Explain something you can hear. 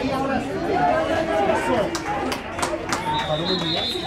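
Football players' pads clash as they collide in a tackle.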